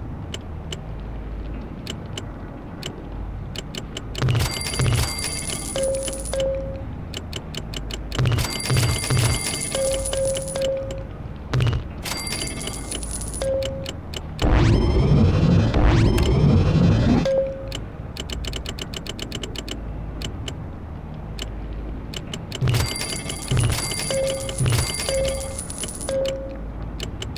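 Soft menu clicks tick rapidly.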